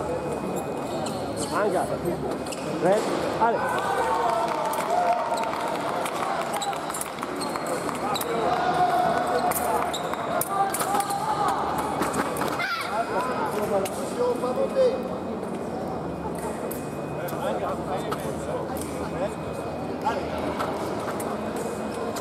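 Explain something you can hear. Shoes stamp and squeak on a hard floor as fencers move.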